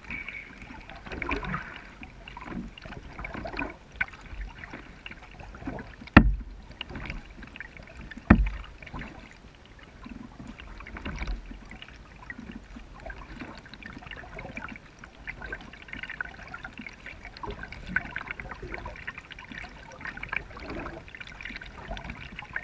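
A kayak paddle dips and splashes in calm water.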